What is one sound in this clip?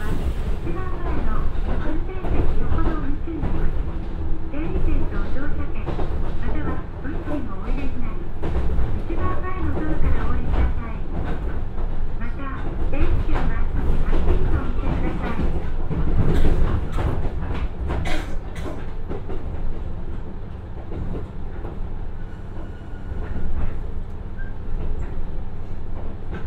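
A diesel train engine rumbles steadily as the train slows down.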